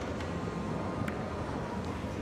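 A cue tip strikes a ball with a soft click.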